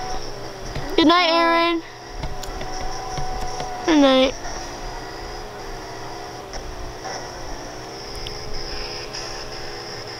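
A handheld game plays electronic music and chirping sound effects close by.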